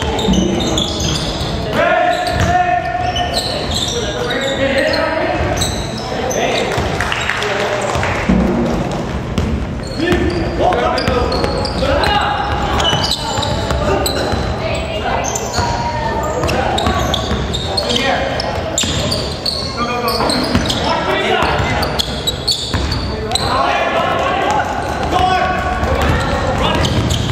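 Sneakers squeak on a hardwood floor in an echoing gym.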